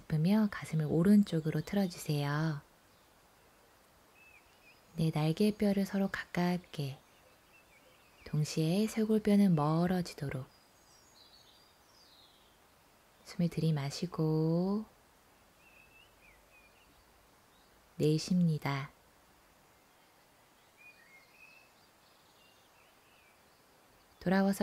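A young woman speaks calmly and clearly, giving instructions in short phrases, close to a microphone.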